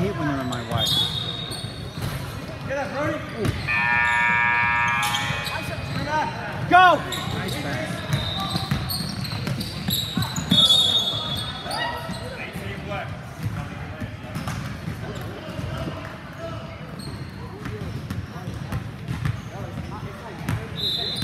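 A basketball bounces with hollow thuds.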